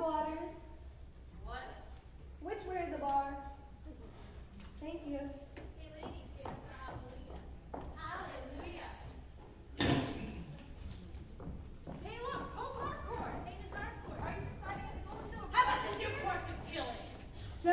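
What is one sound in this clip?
Actors speak and sing on a stage, heard from afar in a large hall.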